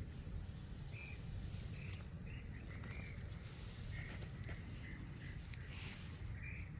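A bird answers with soft, repeated calls from nearby.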